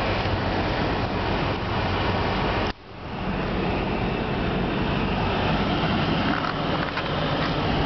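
A car's engine and road noise rumble steadily from inside the car.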